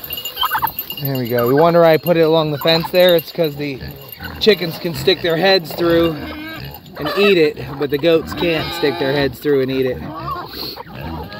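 Goats bleat loudly and repeatedly close by.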